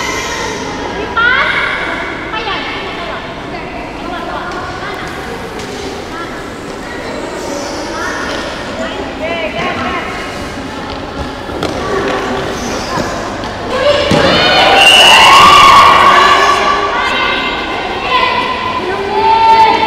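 Young women shout and cheer in a large echoing hall.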